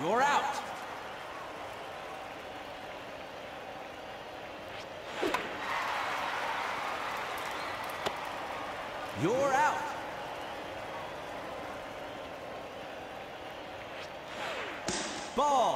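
A crowd cheers and murmurs in a large stadium.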